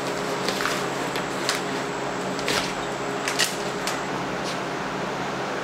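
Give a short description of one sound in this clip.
A man scrapes at a ceiling with a metal scraper.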